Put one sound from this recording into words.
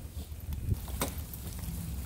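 An egg cracks sharply against the rim of a pan.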